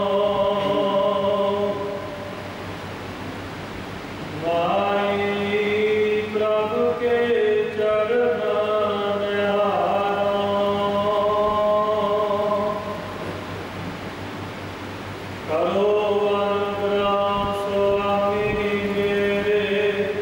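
A man sings a sustained hymn through a microphone, in long held phrases.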